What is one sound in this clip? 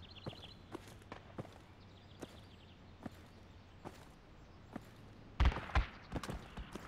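Footsteps thud steadily on hard ground.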